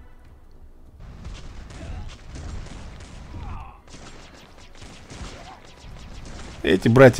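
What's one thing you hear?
Gunshots pop in quick, rapid bursts.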